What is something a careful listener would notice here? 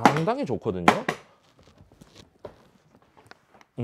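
A hard plastic case knocks and rattles as it is lifted.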